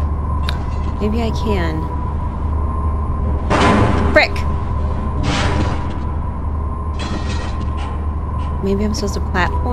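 A young woman speaks casually into a close microphone.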